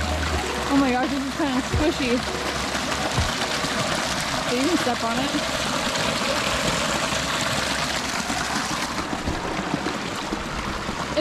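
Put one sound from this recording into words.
Water gushes and splashes over rocks close by.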